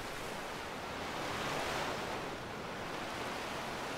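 Waves wash and splash against rocks.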